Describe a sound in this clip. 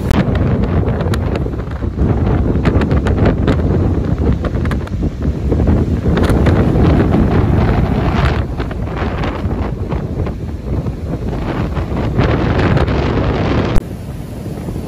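Strong wind blusters loudly into the microphone outdoors.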